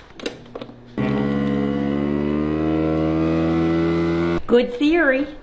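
A vacuum sealer hums steadily.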